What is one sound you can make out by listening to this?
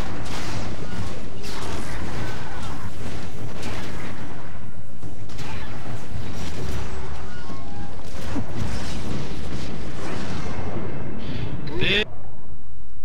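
Magic spells crackle and burst in a game battle.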